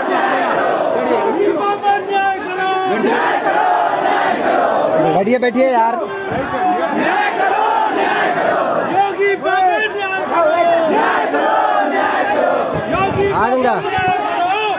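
Men nearby talk over one another with animation.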